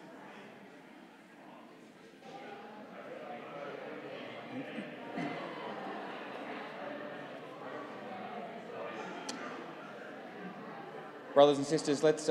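People chat quietly in a large echoing hall.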